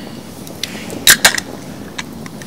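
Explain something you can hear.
A drink can snaps open with a sharp hiss.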